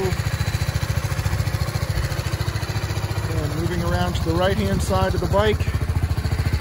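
A motorcycle engine idles with a steady, fast, low throb close by.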